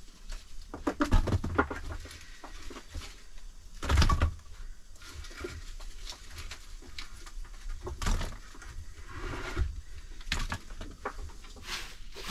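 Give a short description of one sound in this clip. Pieces of wood clatter and knock on a wooden floor.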